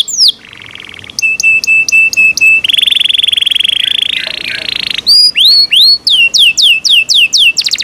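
A canary sings loudly and close by in rapid trills and sweeping whistles.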